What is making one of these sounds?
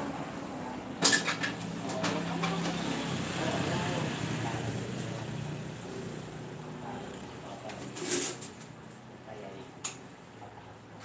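Metal pots and utensils clink and clatter.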